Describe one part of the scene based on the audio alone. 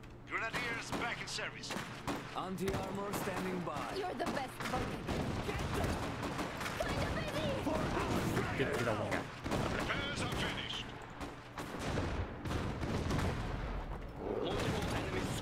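Rifle fire crackles in quick bursts.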